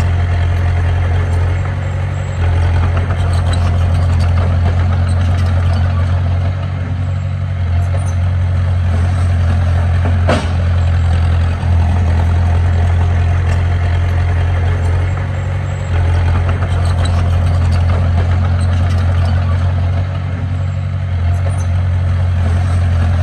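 Bulldozer tracks clank and squeak as the machine moves.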